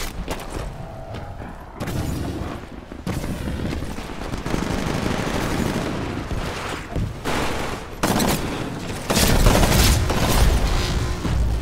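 Gunfire from a rifle crackles in short bursts.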